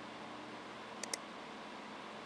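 A soft double click sounds as a message opens.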